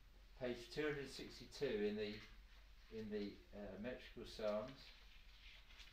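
A man speaks close by, calmly, in short phrases.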